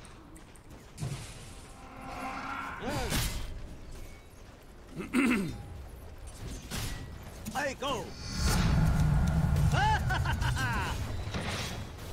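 Video game battle effects clash and whoosh.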